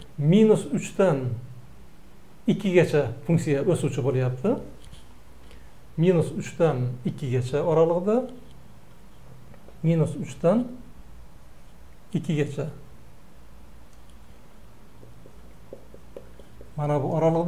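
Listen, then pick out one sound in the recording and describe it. An elderly man explains calmly and clearly, close by, in short bursts with pauses.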